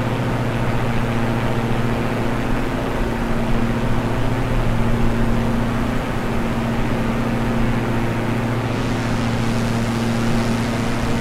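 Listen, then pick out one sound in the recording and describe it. A twin propeller plane engine drones steadily.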